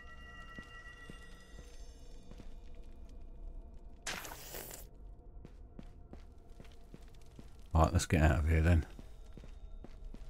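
Footsteps tread steadily on a stone floor.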